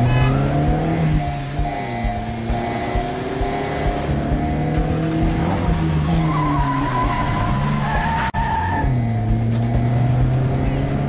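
Car engines rev and roar as cars drive past.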